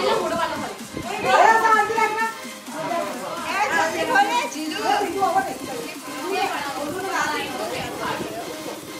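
A young girl talks nearby with animation.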